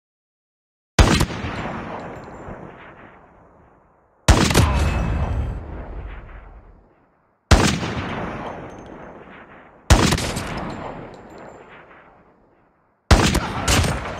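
A heavy sniper rifle fires loud booming shots that echo away.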